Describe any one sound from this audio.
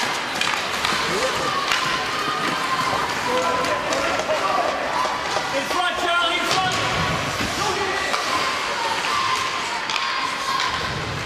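Young players and spectators shout in an echoing ice rink.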